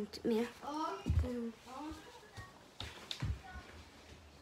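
Footsteps thud on a wooden floor as a boy runs off.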